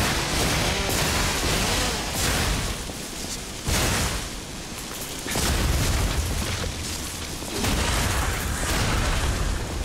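Metal weapons clash with sharp clangs.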